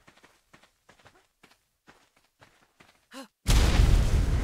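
Footsteps run across the ground.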